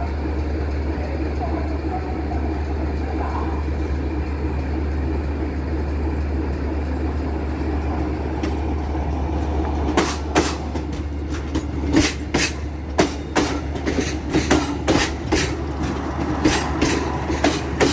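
A diesel train engine rumbles as it approaches and passes close by.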